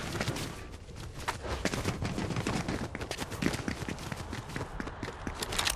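Quick footsteps patter on hard stone.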